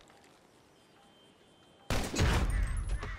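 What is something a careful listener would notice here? A gunshot rings out sharply.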